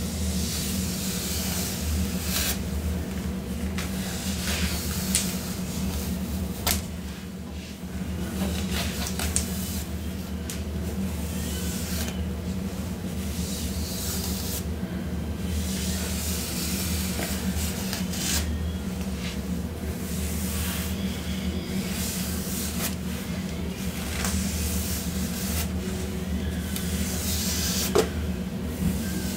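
A comb rasps through hair.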